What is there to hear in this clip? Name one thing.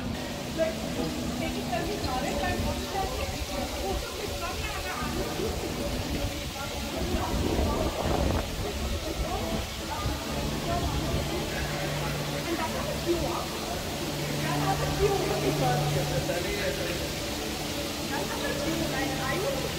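Fountain jets splash steadily into a pool.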